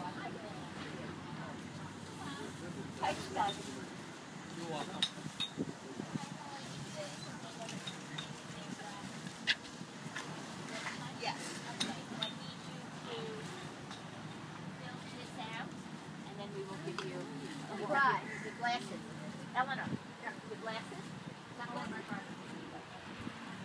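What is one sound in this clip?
Men and women chatter in a crowd nearby, outdoors.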